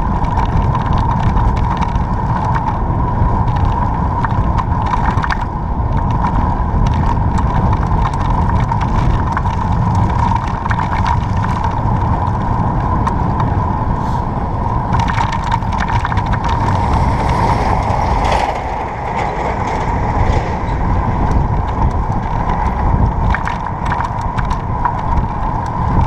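Wind buffets loudly and steadily outdoors while moving along a road.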